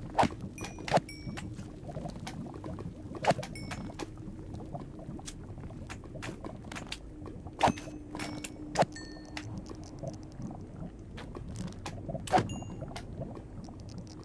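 A creature squelches and bounces with soft wet hops.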